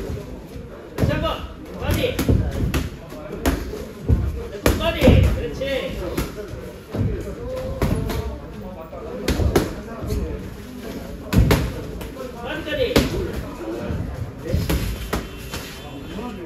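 Sneakers squeak and shuffle on a padded floor.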